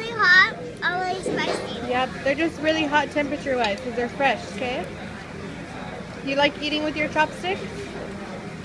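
A young girl talks close by in a high voice.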